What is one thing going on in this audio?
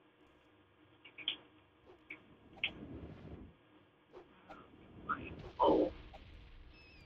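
A magic spell fizzles with a whooshing burst.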